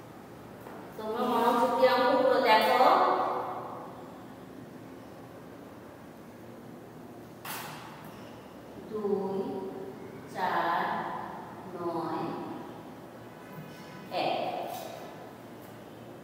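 A woman speaks calmly, close by.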